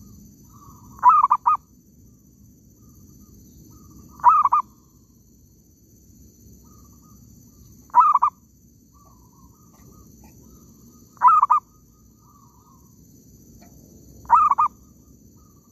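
A bird gives short, sharp calls at regular intervals.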